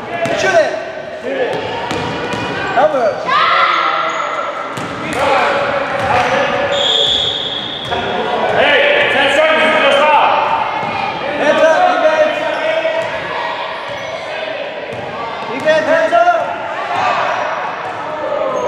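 Young girls shout and call out to each other in a large echoing hall.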